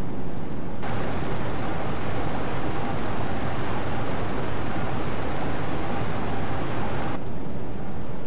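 Water rushes and splashes against a submarine's bow.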